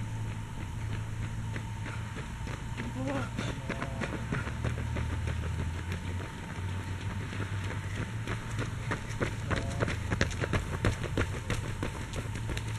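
Running footsteps patter on a paved road.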